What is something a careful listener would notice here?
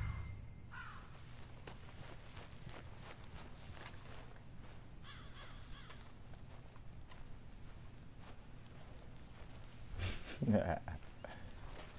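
Footsteps swish through tall grass.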